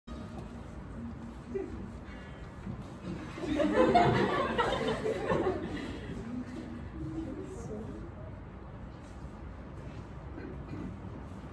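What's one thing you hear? A group of young women sing together.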